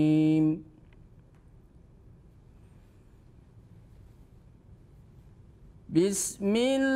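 A middle-aged man recites in a drawn-out, melodic chanting voice, close to a microphone.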